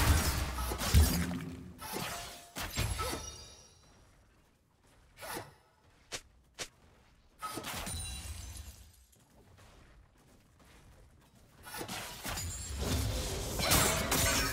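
Fantasy combat effects crackle, whoosh and clash in bursts.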